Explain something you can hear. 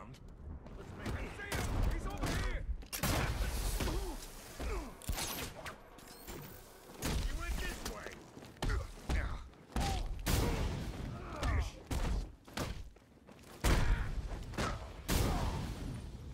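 Punches and kicks land with heavy thuds again and again.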